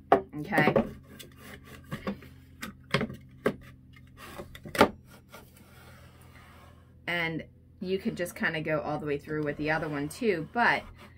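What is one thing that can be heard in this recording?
A plastic sled slides and knocks across a metal table.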